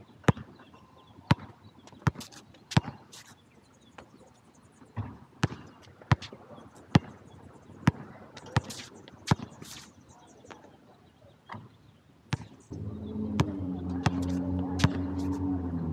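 A basketball bounces sharply on a hard outdoor court.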